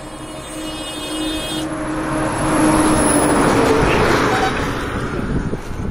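A vehicle drives past on the road nearby.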